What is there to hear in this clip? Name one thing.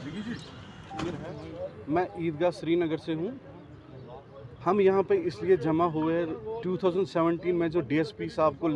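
A young man speaks calmly into microphones, close by.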